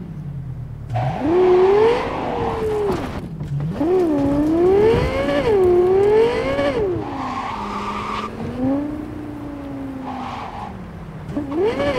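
Tyres screech as a car drifts.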